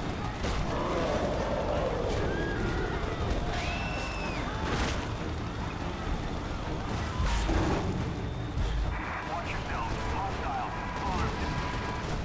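A loud, dull rumble of destruction goes on throughout.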